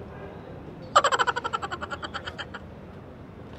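A young woman laughs loudly.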